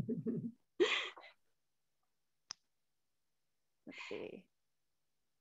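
A woman laughs softly over an online call.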